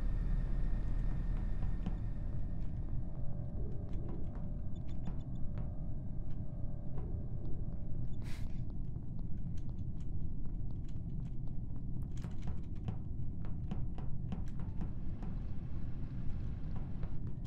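Footsteps patter quickly and lightly.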